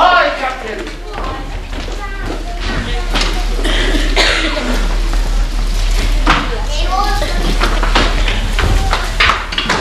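Feet thump and shuffle on a wooden stage.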